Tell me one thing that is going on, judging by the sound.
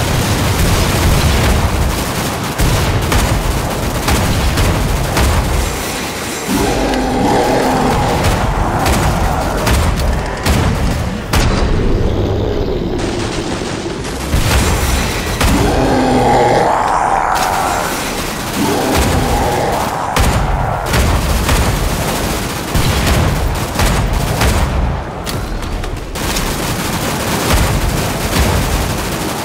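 A heavy rifle fires loud, sharp shots again and again.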